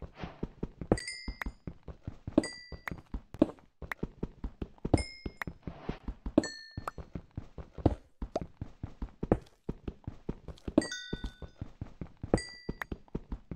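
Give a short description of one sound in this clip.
Small items pop with short bright chimes as they are picked up.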